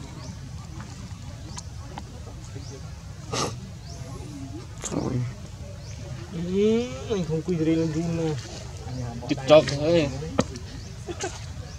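Water ripples softly as a monkey swims.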